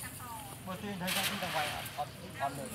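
A cast net splashes into the water.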